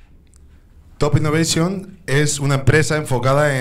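A man speaks into a microphone over a loudspeaker, in an echoing hall.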